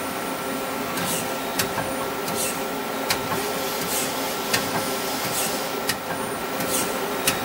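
Metal parts clink and tick sharply.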